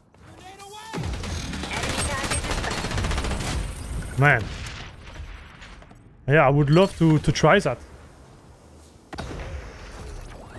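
Rapid gunfire rattles.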